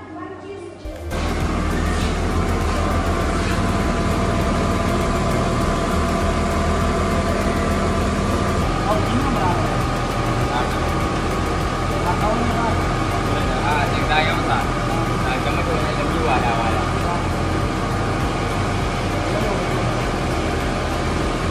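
A machine hums loudly and steadily.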